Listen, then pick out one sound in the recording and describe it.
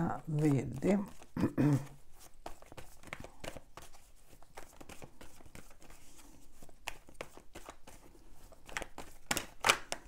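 Playing cards riffle and flick softly as a deck is shuffled by hand.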